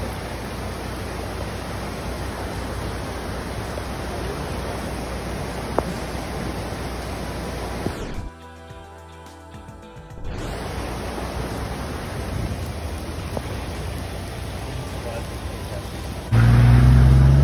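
Floodwater rushes and churns loudly.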